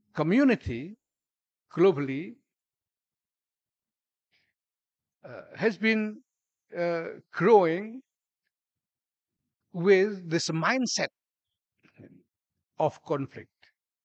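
A middle-aged man speaks calmly into a microphone, in phrases with pauses.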